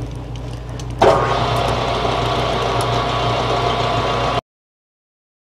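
A lathe motor hums steadily as the chuck spins.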